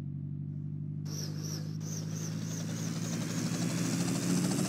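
Helicopter rotor blades begin to whirl and chop, growing louder.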